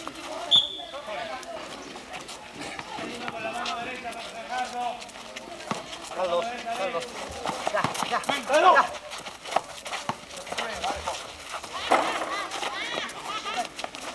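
Sneakers scuff and squeak on pavement.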